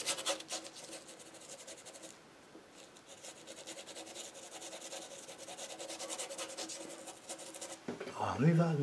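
A paintbrush scratches and dabs against canvas in quick strokes.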